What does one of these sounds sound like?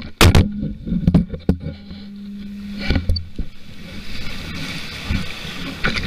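A windsurf sail flaps in the wind.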